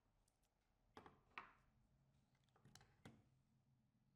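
Fingers snap sharply a few times.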